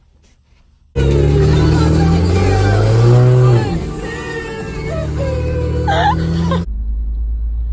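A car engine revs loudly nearby.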